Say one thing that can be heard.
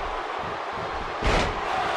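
A body slams down hard onto a wrestling mat with a heavy thud.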